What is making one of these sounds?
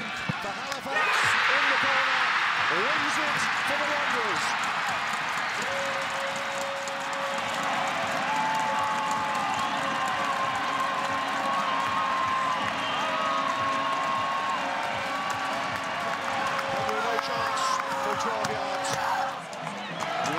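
A large crowd roars and cheers loudly outdoors.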